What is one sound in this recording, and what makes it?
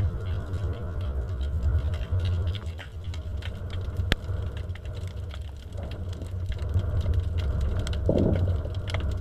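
Water rumbles low and steadily underwater.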